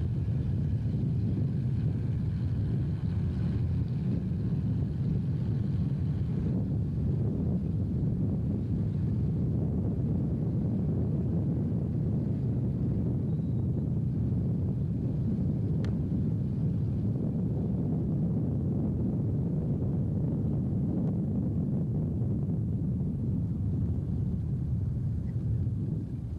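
Tyres roll over a rough road surface.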